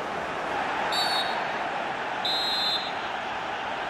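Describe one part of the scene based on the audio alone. A referee blows a whistle twice in short, sharp blasts.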